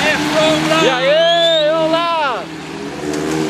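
A man shouts loudly and excitedly close by.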